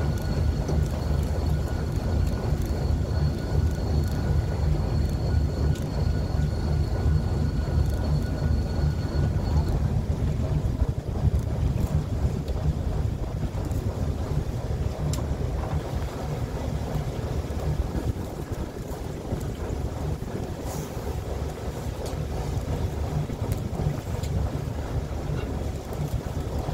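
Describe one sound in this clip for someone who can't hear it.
Water splashes against a boat's hull.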